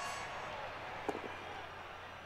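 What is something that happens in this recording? Dice rattle and clatter briefly.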